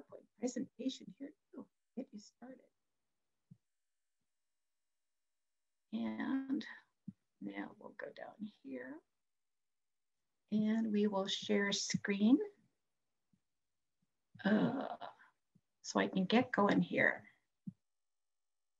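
An elderly woman speaks calmly into a headset microphone, heard as if over an online call.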